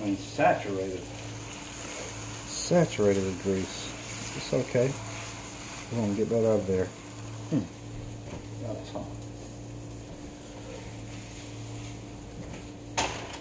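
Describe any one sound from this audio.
Meat patties sizzle softly in a frying pan.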